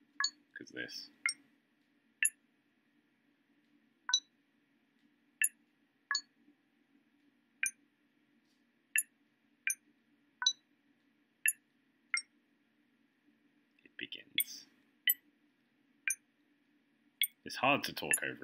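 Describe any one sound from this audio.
Buttons on a game keypad click one at a time with short electronic beeps.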